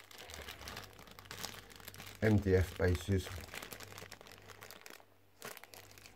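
A plastic bag crinkles as coins shift inside it.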